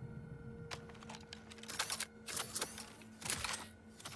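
A gun clicks and rattles as it is drawn.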